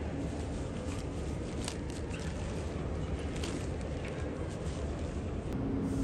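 A bag rustles and its zipper rasps as it is searched.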